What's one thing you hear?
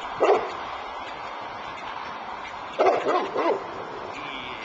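A large dog barks loudly a few times.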